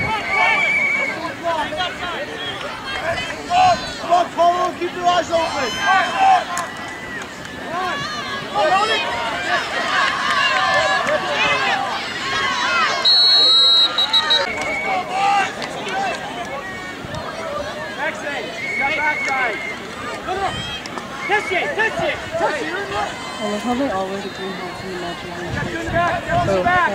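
A crowd of spectators chatters and cheers outdoors.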